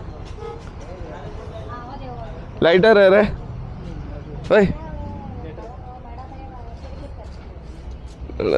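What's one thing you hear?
Other men nearby talk in the background.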